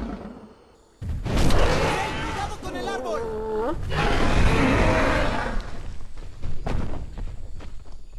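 Heavy thuds crash as two huge beasts fight.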